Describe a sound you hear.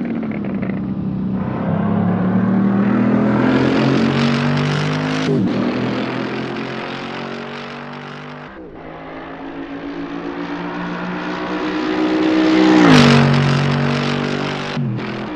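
A sports car engine roars loudly, its pitch rising and dropping as it passes by.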